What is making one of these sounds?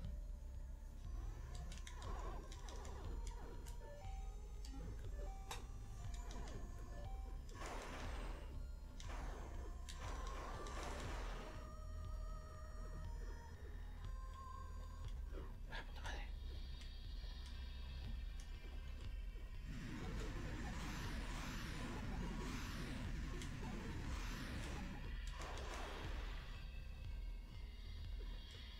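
Electronic game sound effects chirp, zap and blast over a low music drone.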